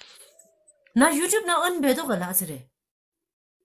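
A woman talks over an online call.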